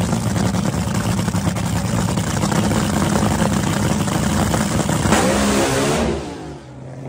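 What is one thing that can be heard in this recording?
A dragster engine roars loudly at close range.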